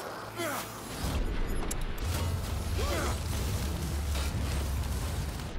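A spell bursts with a deep, rumbling roar.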